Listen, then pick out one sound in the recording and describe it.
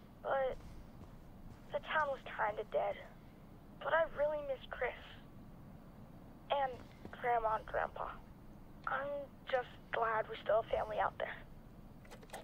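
A young man speaks calmly and softly, heard close by.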